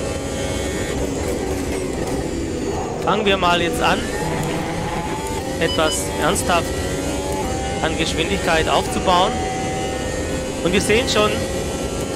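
A racing car engine whines at high revs, shifting through gears.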